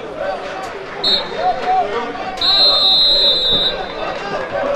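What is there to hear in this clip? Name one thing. A referee blows a whistle sharply.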